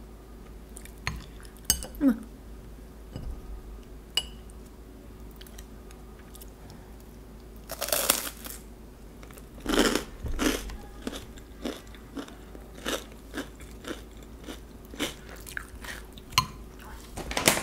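A spoon clinks against a glass bowl.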